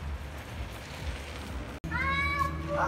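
Scooter wheels rattle over cobblestones nearby.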